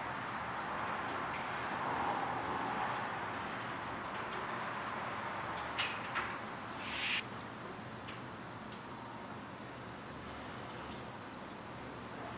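Fingers tap quickly on a laptop keyboard.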